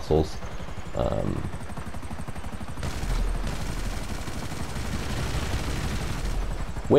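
A helicopter's rotor thumps steadily as it lifts off and flies.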